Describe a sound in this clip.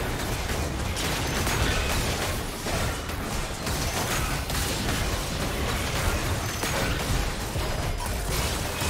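Game spell effects and attacks crackle and boom in quick bursts.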